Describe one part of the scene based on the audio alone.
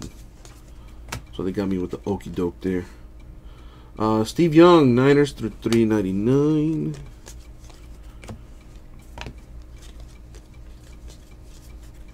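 Trading cards rustle and slide against each other in someone's hands.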